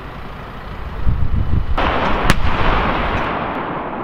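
A large field gun fires with a heavy boom that echoes and slowly rolls away.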